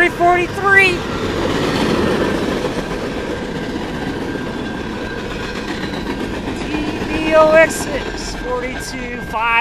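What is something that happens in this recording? A freight train rumbles and clatters past on the tracks.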